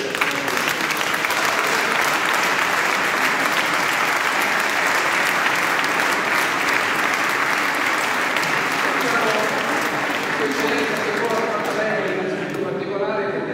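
An audience claps loudly in a large echoing hall.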